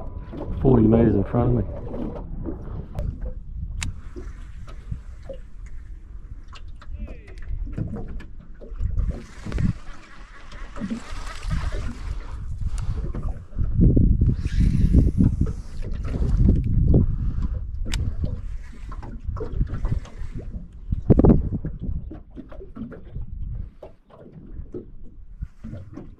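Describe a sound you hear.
Wind gusts across open water, rumbling against the microphone.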